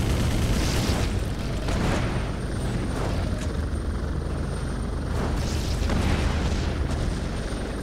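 Explosions boom in the streets below.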